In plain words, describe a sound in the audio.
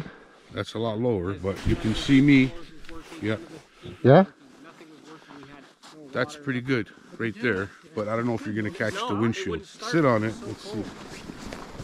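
A middle-aged man talks casually and close up, outdoors.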